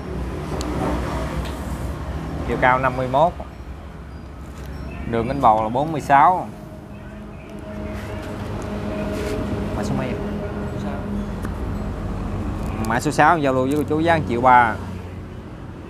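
A middle-aged man talks with animation, close to a clip-on microphone.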